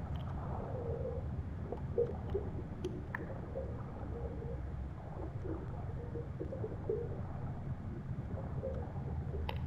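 A swimmer's strokes gurgle through the water.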